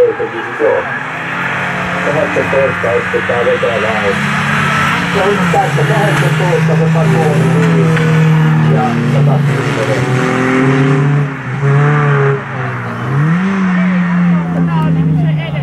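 Racing car engines roar and rev up and down close by.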